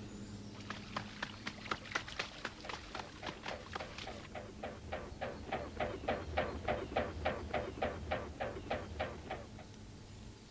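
A swan's wings beat with a loud, rhythmic throbbing as it flies.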